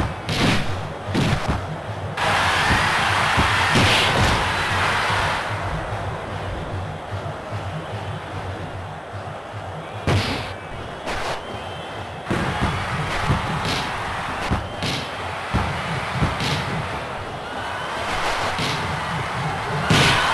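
A video game football is kicked with short thuds.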